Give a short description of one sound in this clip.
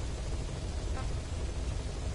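A short electronic menu blip sounds.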